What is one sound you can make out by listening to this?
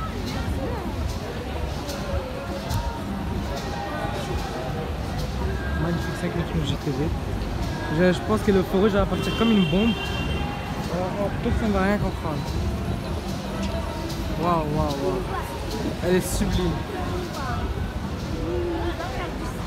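A crowd of people chatters nearby on a busy street.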